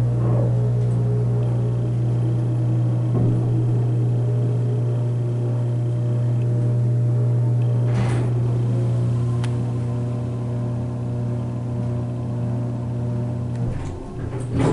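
An elevator car hums steadily as it travels, then goes quiet as it stops.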